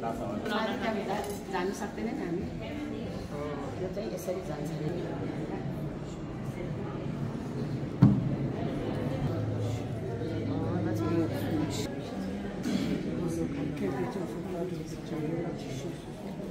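A crowd of men and women murmur and chant nearby in a large echoing hall.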